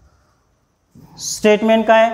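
A man speaks loudly and close by.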